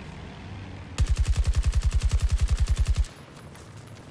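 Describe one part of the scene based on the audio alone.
A heavy machine gun fires a rapid, steady burst.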